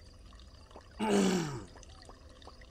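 A man lets out a short, falling exclamation close to a microphone.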